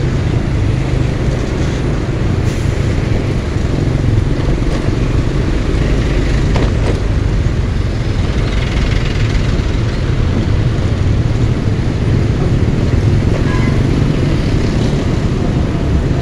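Motorcycle engines rumble steadily in slow, heavy traffic close by.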